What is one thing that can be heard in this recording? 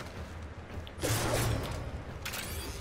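A staff weapon strikes an enemy with a sharp, crackling hit.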